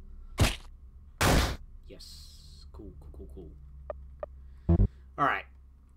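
Loud punching thuds strike in short bursts.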